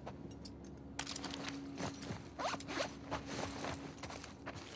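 Gear clicks and rattles as a weapon is swapped.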